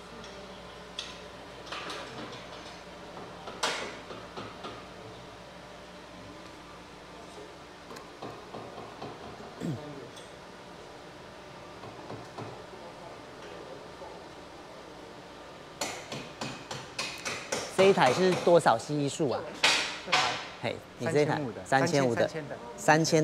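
Metal tools clink and clank as a mechanic works on a car wheel.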